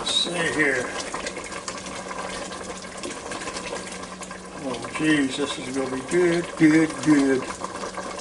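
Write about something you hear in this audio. A spatula scrapes and stirs inside a metal pot.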